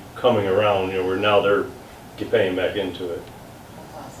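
A man speaks calmly to a small room.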